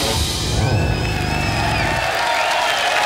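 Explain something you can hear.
A rock band plays loudly, then stops.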